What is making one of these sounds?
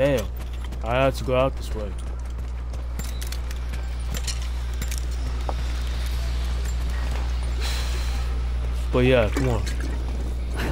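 A young man exclaims loudly into a close microphone.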